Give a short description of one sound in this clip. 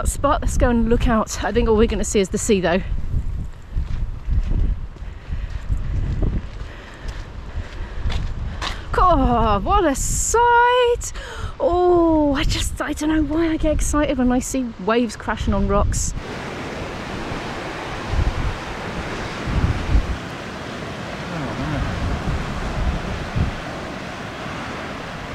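Wind gusts outdoors, rumbling low.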